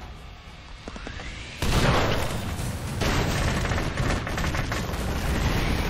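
An explosion booms and crackles with fire.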